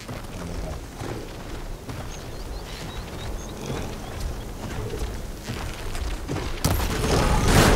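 An arrow whooshes from a bow.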